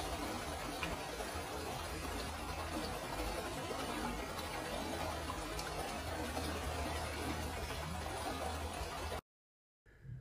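Shallow water laps and trickles gently over stones.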